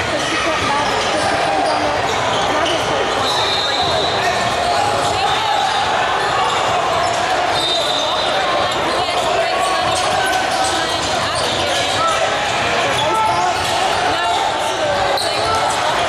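A crowd chatters throughout a large echoing hall.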